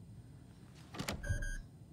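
A menu opens with a sharp click and a short electronic chime.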